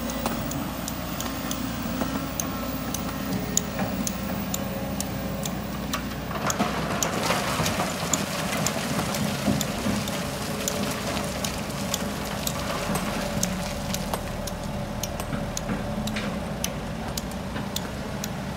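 Rocks clatter and thud into a truck bed.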